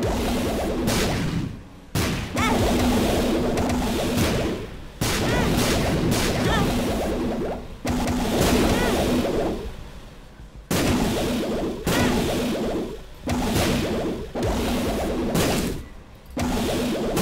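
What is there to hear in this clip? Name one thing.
A laser beam hums and roars loudly in bursts.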